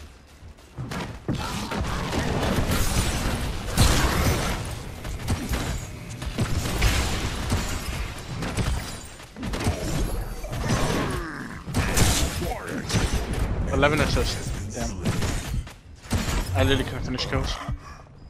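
Weapons and magic effects blast and crackle loudly in a fight.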